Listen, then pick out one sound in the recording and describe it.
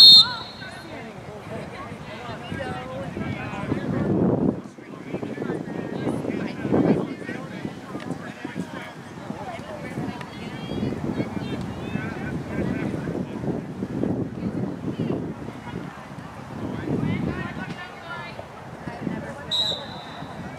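Spectators chatter and call out nearby outdoors.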